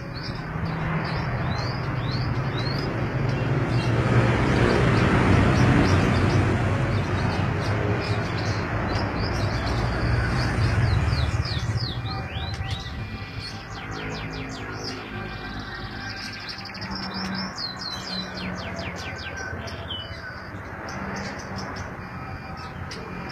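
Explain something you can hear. Small birds chirp and twitter in quick bursts, outdoors.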